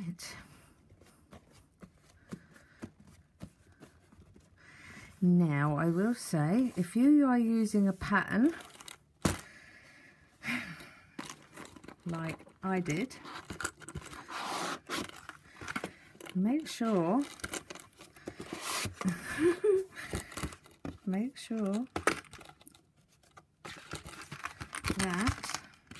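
Stiff card rustles and taps as hands handle a small box.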